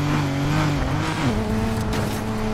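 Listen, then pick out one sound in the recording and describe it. A car engine drops in pitch as the gear shifts.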